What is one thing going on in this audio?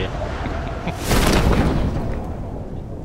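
A parachute snaps open with a sudden whoosh.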